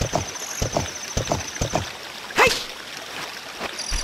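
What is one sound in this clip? Hooves clop rapidly as a horse gallops.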